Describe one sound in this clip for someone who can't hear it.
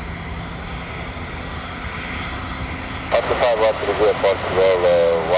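A jet airliner's engines roar in the distance as it rolls along a runway.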